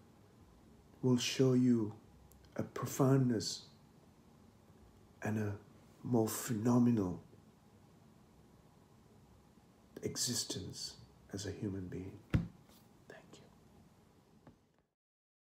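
A man speaks calmly and expressively close to the microphone, in short phrases with pauses.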